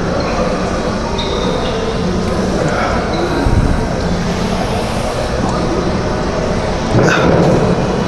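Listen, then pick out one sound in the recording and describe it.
A cable exercise machine whirs and clanks as weights move.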